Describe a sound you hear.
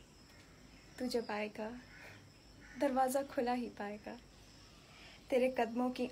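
A young woman recites softly and close by, in short phrases with pauses.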